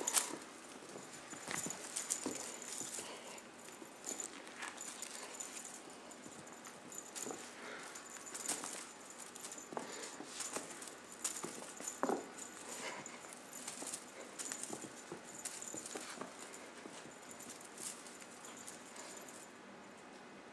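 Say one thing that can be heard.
Kittens scamper and pounce on carpet.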